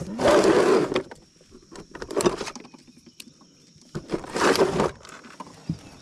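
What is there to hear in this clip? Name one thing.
Gear rattles and clatters as hands rummage through a tackle box.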